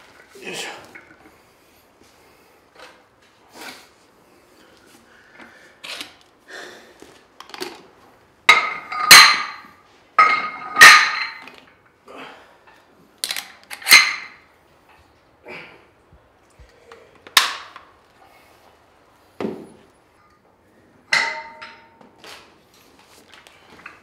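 Metal weights clink and clank as they are lifted and set down.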